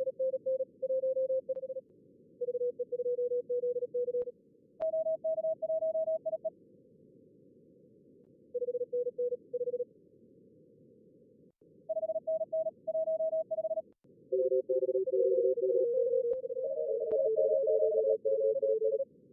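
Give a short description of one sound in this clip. Soft radio static hisses steadily.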